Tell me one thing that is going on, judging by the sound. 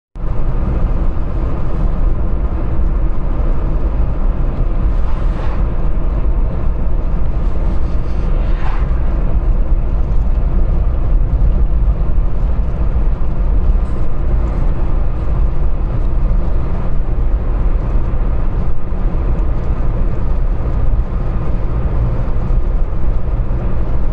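Tyres roll with a steady roar on the road.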